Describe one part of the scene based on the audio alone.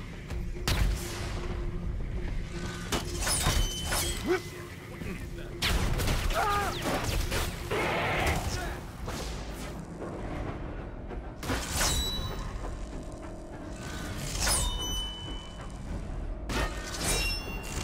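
Sharp blasts and bangs go off in bursts.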